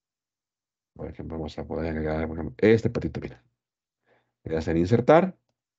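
A man speaks calmly through a headset microphone, as if on an online call.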